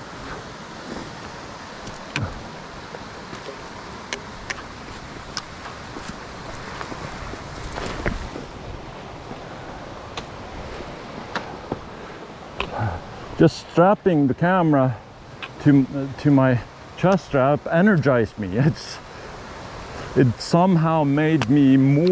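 A trekking pole taps on the ground and rocks.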